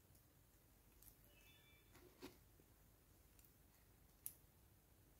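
Small metal earrings click softly against each other close by.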